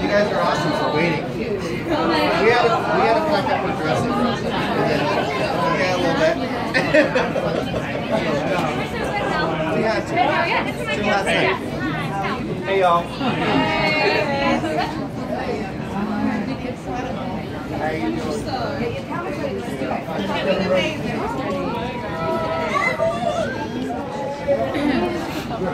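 A young woman talks cheerfully with fans up close.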